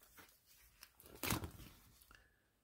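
A plastic sleeve rustles as a page is turned.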